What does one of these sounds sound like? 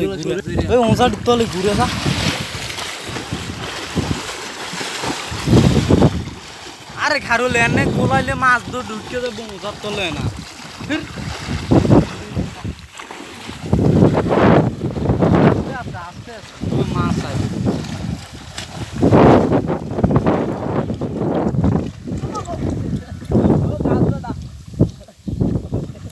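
Water splashes and churns loudly.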